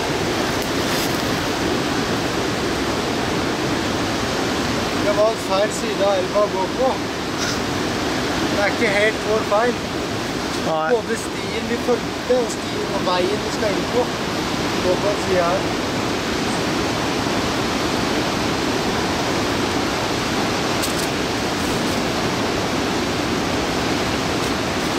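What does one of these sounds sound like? Boots scrape on rock.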